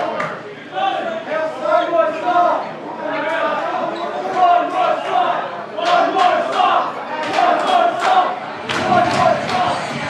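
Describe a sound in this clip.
A woman sings through loudspeakers.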